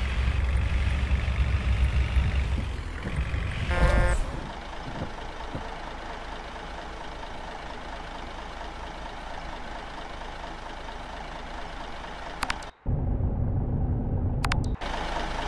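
A bus engine rumbles low and then quietens as the bus slows down.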